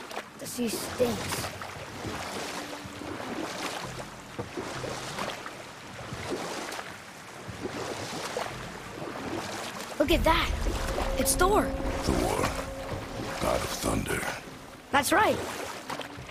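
Oars splash and paddle through water.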